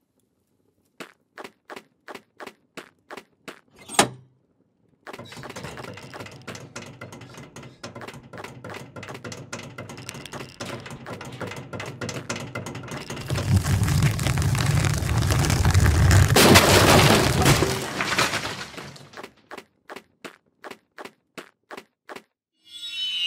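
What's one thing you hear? Small footsteps tap steadily on hard ground.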